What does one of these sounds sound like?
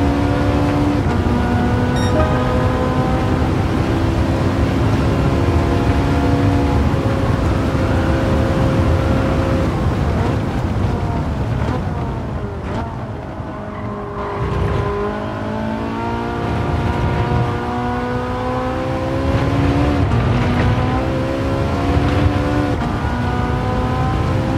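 Gears shift with short jumps in the engine's pitch.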